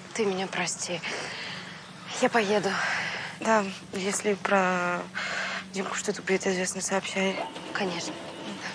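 A young woman answers quietly, close by.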